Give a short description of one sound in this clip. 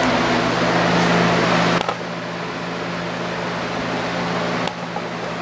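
An electric fan whirs steadily nearby.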